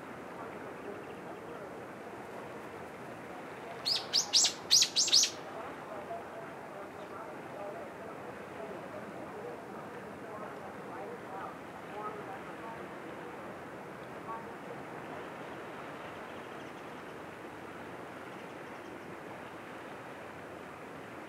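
Gentle waves lap softly against a rocky shore.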